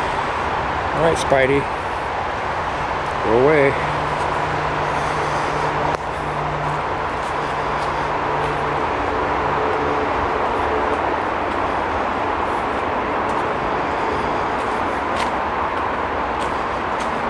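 A steady breeze rustles through the trees outdoors.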